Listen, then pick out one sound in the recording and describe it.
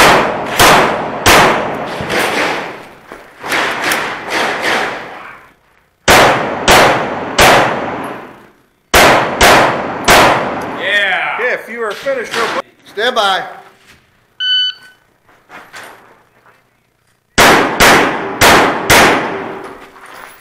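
A pistol fires rapid shots that echo in a large space.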